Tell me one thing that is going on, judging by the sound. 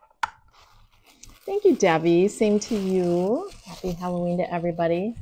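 Plastic wrapping crinkles in a woman's hands.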